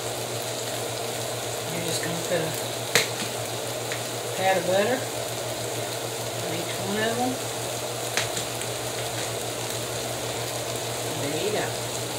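A knife scrapes butter across toast.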